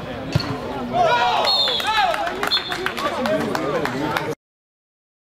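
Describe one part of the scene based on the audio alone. A small crowd of men cheers loudly.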